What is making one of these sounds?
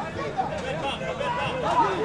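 A man shouts instructions from the sideline.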